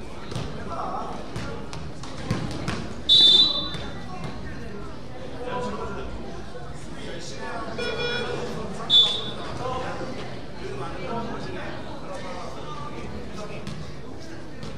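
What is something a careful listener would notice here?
A crowd of spectators chatters throughout.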